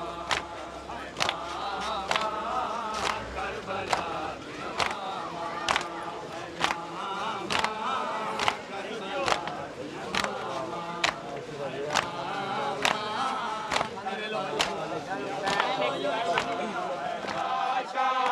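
A crowd of men beat their chests in a steady rhythm.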